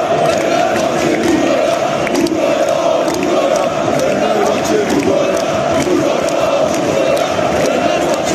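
Fans clap their hands nearby.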